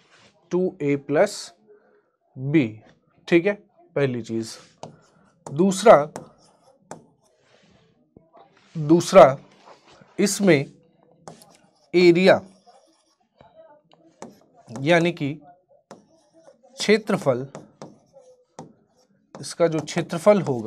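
A man speaks steadily in short phrases close to a microphone.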